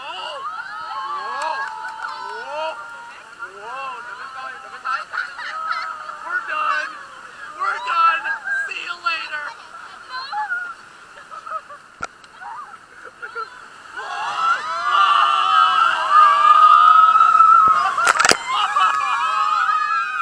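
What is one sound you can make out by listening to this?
Water rushes and splashes nearby.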